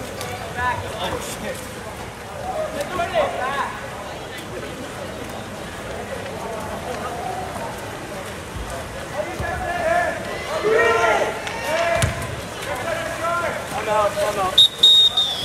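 Spectators shout and cheer from the stands nearby.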